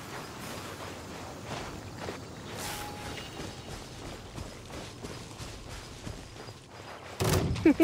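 Footsteps patter across grass.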